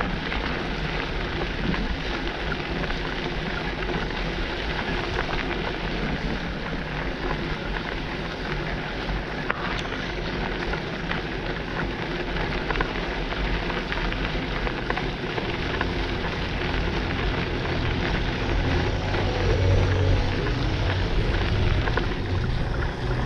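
Tyres crunch steadily over gravel.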